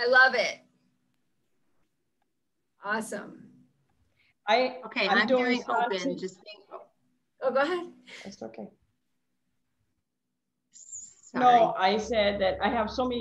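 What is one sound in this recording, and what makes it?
Several women talk and laugh over an online call.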